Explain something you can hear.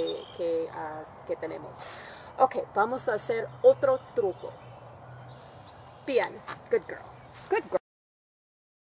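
A woman talks calmly and warmly, close by.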